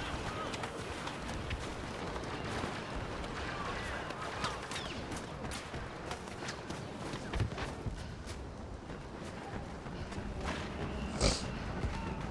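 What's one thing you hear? Laser blasters fire in sharp bursts.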